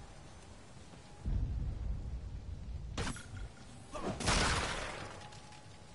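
A heavy punch lands with a sharp, loud thud.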